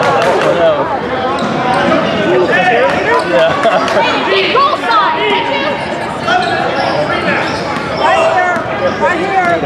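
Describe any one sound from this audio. Young people shout and cheer in an echoing gym.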